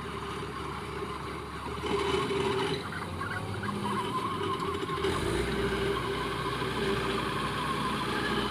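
Machinery on a harvester rattles and clanks as it moves.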